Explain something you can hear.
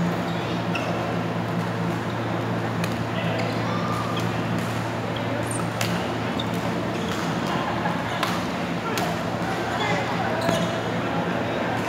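Badminton rackets hit shuttlecocks with sharp, echoing pops.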